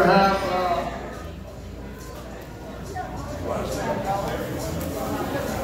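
A middle-aged man speaks into a microphone, heard through loudspeakers in a room.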